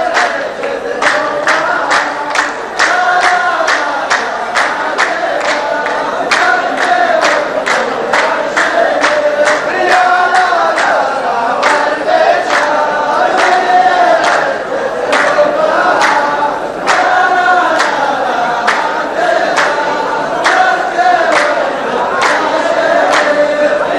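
A line of men claps in a steady rhythm.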